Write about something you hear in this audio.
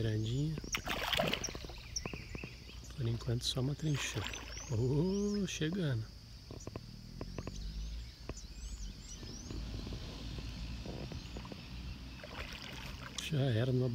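Water splashes as a large fish lunges at the surface.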